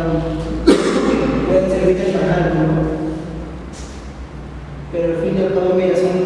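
A young man talks nearby in a casual voice.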